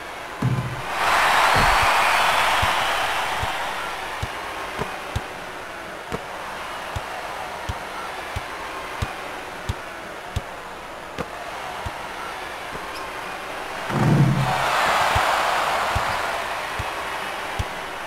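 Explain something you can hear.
A crowd cheers loudly, then slowly dies down.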